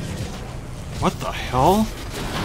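A magical shield hums on with rising whooshing tones.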